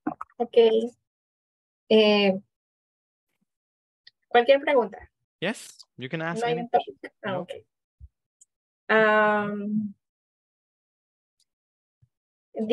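A woman talks in short bursts over an online call.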